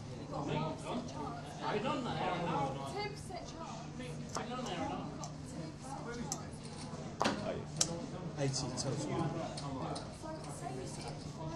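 Men talk in low voices around a table.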